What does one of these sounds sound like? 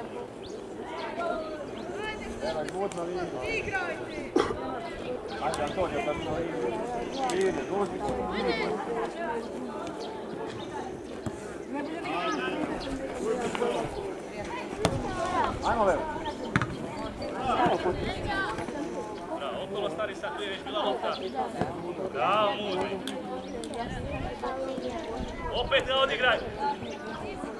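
Young players shout and call out to each other across an open outdoor field.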